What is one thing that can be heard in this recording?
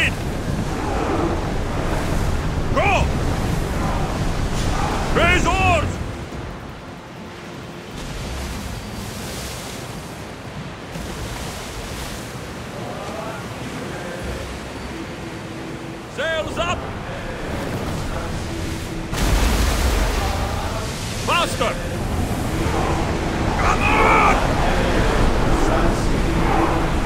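Waves crash and rush against a ship's hull.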